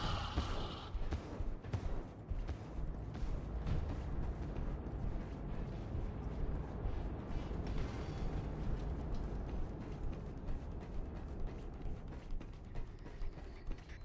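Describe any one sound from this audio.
Footsteps thud steadily across a hard floor.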